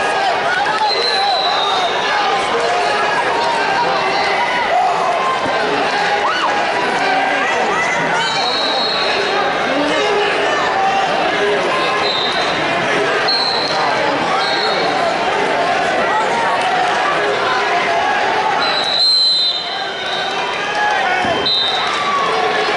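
A referee blows short whistle blasts.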